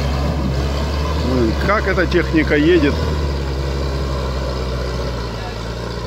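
An off-road vehicle's engine rumbles steadily as it drives slowly through mud.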